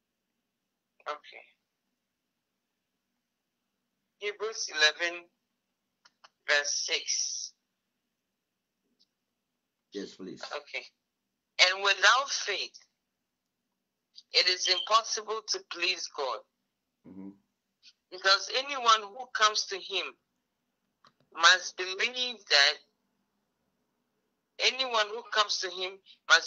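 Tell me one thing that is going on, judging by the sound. A man speaks calmly in short bursts, close to the microphone, with pauses between phrases.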